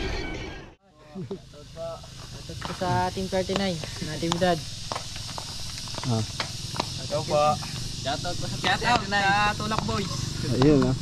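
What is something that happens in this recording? Young boys talk with animation close by.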